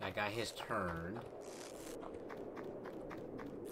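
Light footsteps patter quickly.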